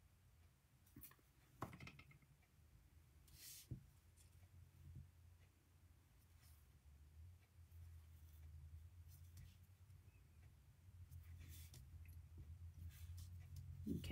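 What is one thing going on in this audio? A stiff card rustles and creases as it is folded by hand.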